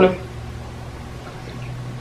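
A young woman gulps water from a plastic bottle.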